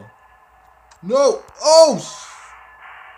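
A young man shouts loudly into a close microphone.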